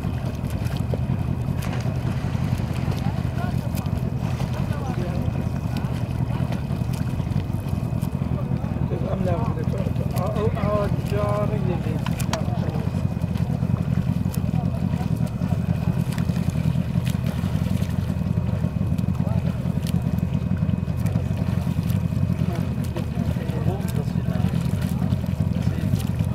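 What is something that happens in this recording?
Water splashes as a swimmer's arms stroke through it.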